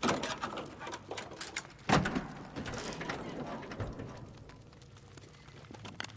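Metal clanks and rattles as a car's engine parts are searched.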